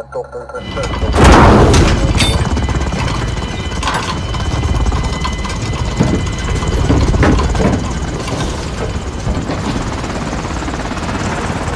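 A helicopter's rotor thumps and roars.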